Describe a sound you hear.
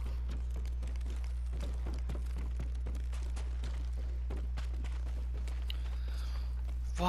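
Footsteps tap softly on a wooden floor.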